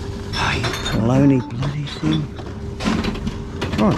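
A bottle clatters into a recycling machine.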